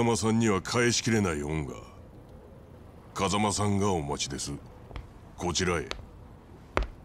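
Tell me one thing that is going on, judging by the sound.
A middle-aged man speaks slowly in a deep, serious voice.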